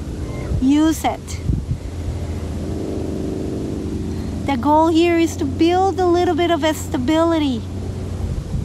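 A woman speaks calmly, giving instructions, close by.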